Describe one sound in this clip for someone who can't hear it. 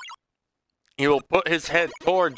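A young man speaks animatedly close to a microphone.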